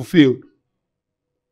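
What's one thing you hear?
A young man speaks with animation through a headset microphone.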